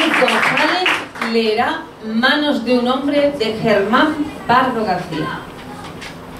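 A young woman speaks into a microphone through a loudspeaker in an echoing room.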